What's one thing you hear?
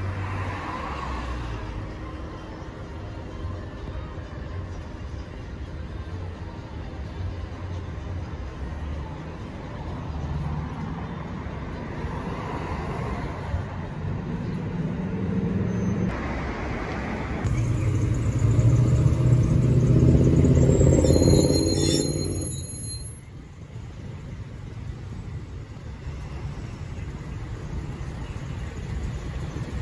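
Traffic hums steadily outdoors.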